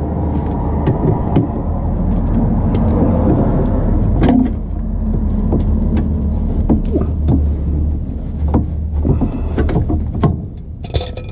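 Metal pliers clink and scrape against metal parts under a car.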